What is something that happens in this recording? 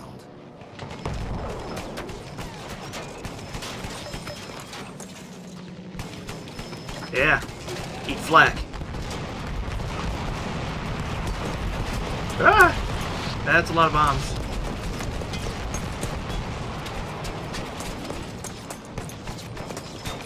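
A heavy machine gun fires in rapid, rattling bursts.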